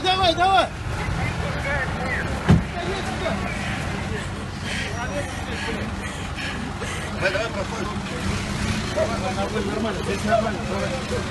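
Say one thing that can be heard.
A crowd of men and women talk nearby outdoors.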